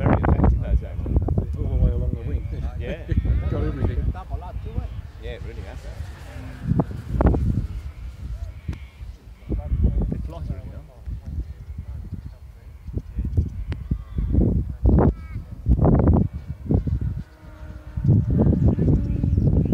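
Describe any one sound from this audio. A small propeller plane drones faintly far overhead.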